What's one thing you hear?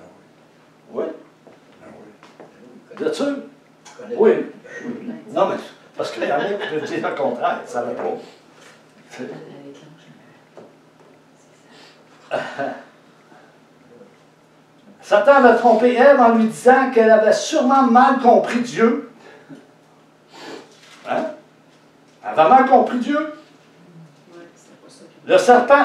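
An older man speaks with animation in a room, pausing often.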